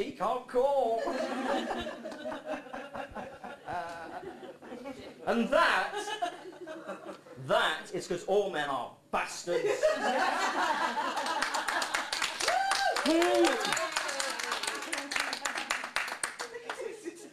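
An audience laughs in a room.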